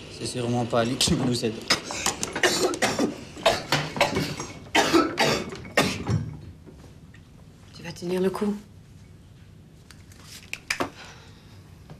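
Small objects tap and clink on a wooden table.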